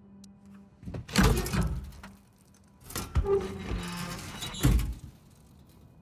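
A heavy metal safe door creaks open.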